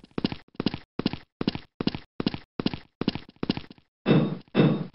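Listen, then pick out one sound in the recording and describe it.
Quick footsteps thud steadily on a hard floor.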